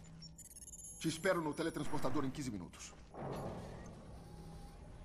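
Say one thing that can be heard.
A man speaks into a microphone close by, with animation.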